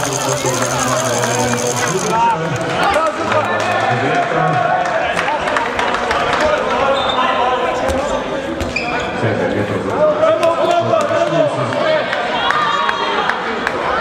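Sports shoes squeak on the floor.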